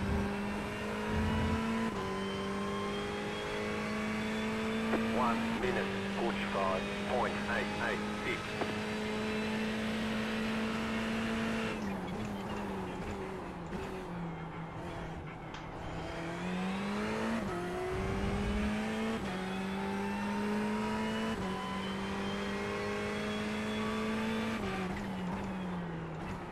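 A racing car engine roars at high revs and shifts up through the gears.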